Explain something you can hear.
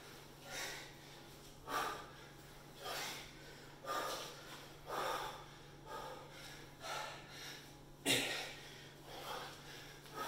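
A man exhales hard and breathes heavily in a steady rhythm.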